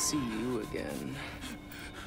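A man speaks quietly and menacingly.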